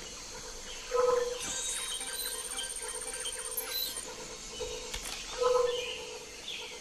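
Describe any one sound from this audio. A handheld electronic device beeps in short tones.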